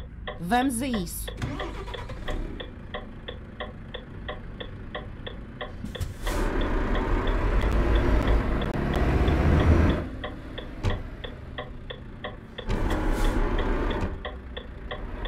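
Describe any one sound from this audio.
A truck engine rumbles steadily at low speed.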